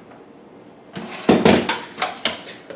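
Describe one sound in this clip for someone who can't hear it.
A blender jar clinks and knocks as a man handles it.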